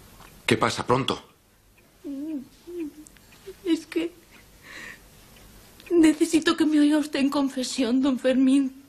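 A woman sobs close by.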